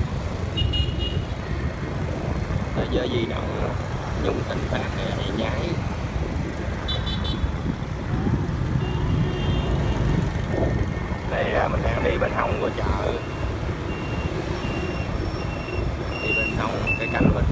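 Motorbike engines hum steadily as they pass close by on a street.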